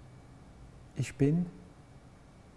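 A man speaks briefly and calmly close to a microphone.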